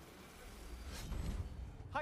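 A heavy axe whooshes through the air.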